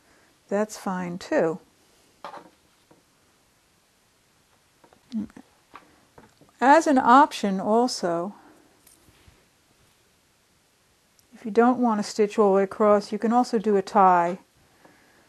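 Cloth strips rustle softly as they are handled.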